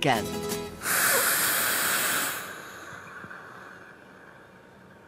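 A man blows hard into a handheld breath meter.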